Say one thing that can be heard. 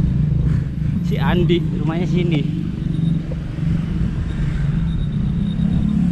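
Motorbike engines hum and pass close by.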